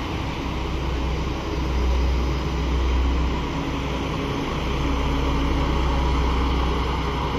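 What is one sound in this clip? A train rumbles into a station, its motor humming steadily.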